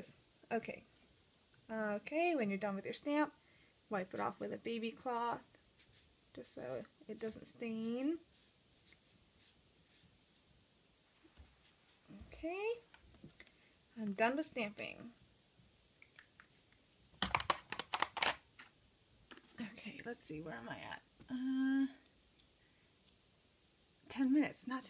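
A small plastic stamp clicks and taps as it is handled.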